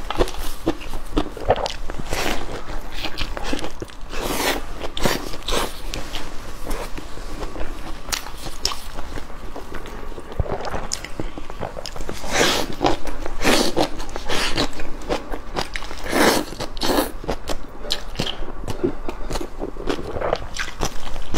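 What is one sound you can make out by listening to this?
Crispy fried bread crunches as a young woman bites into it.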